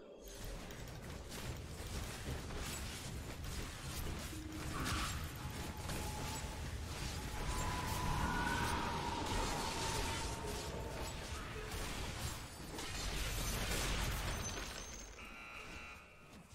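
Game battle effects clash and crackle with spell blasts.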